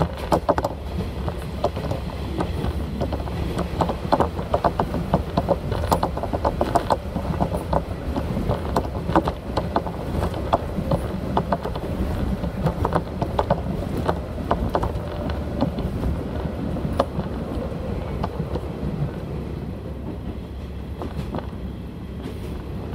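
Train wheels clatter and rattle over the rails.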